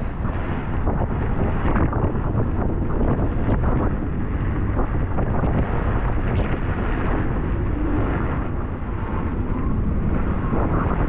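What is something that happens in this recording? Strong wind roars and buffets outdoors.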